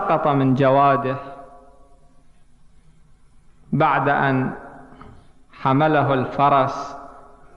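A man speaks into a microphone in measured bursts with pauses.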